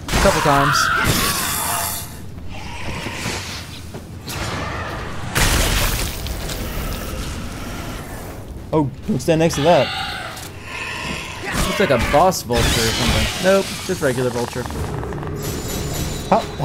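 A blade slashes through flesh with wet, heavy thuds.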